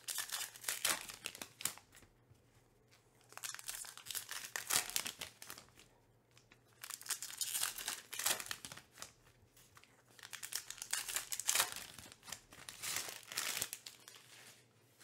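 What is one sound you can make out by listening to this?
Plastic wrappers crinkle and tear as card packs are ripped open.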